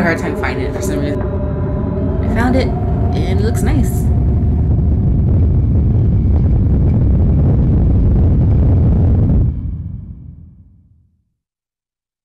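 A heavy metal hatch turns with a deep, loud rumble that fades away.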